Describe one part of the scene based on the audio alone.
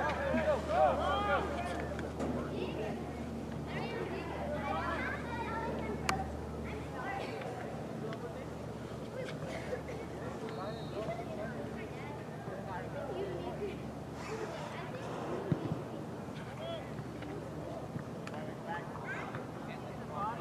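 Teenage boys shout and call to each other across an open field outdoors.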